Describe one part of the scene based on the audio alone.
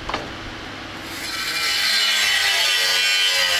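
An angle grinder whirs and grinds metal.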